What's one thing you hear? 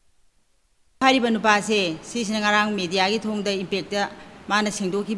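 A middle-aged woman speaks earnestly into a close microphone.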